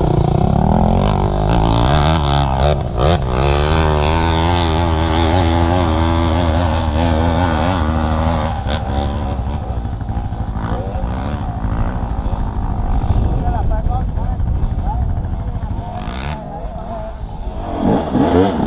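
A two-stroke dirt bike engine idles close by.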